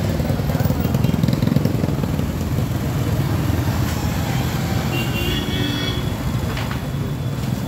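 Motorcycles pass by on a road.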